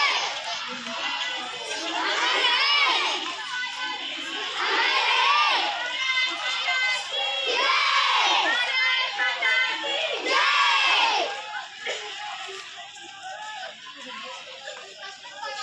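A crowd of children chants slogans in unison outdoors.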